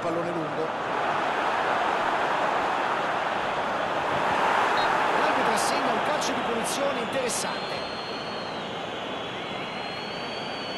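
A large crowd roars steadily in a stadium, then quietens a little.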